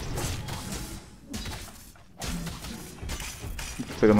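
Heavy blows thud against a creature.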